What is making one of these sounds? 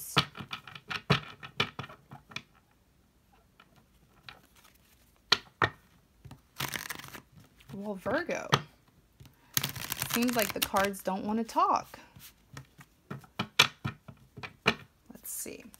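Playing cards riffle and flutter as a deck is shuffled.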